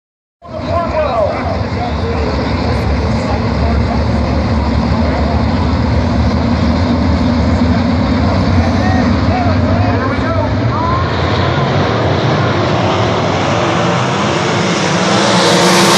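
A crowd of spectators murmurs and calls out nearby.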